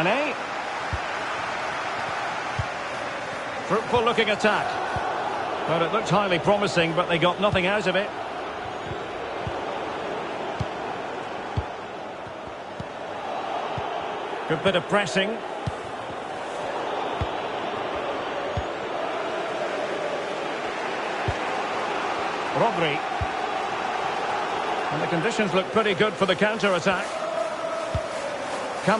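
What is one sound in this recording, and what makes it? A football thuds as it is kicked, now and then.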